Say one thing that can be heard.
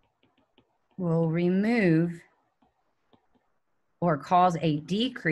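A woman speaks calmly into a microphone, lecturing.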